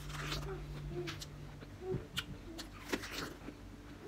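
A young man bites into a crunchy fruit.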